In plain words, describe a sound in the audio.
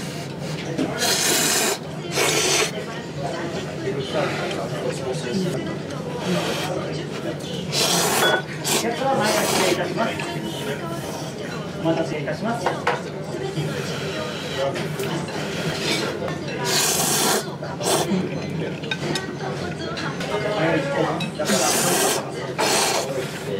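A man slurps noodles loudly, close up.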